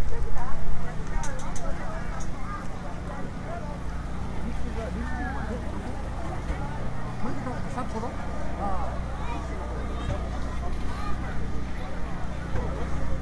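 A crowd of people chatters outdoors all around.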